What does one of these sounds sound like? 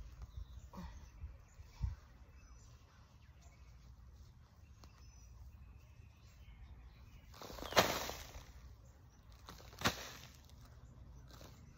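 A woman digs in dry soil with a hand tool.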